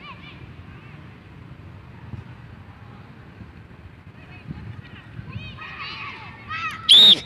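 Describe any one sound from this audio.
Young players shout in the distance across an open field.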